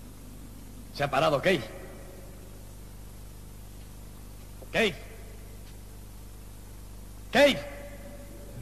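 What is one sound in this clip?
A man shouts out sharply close by.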